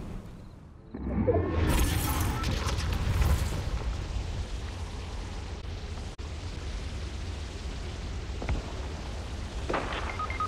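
Wind rushes steadily past during a fast glide through the air.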